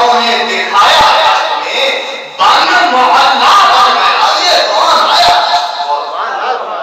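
A man recites with passion into a microphone, his voice loud and echoing through a loudspeaker.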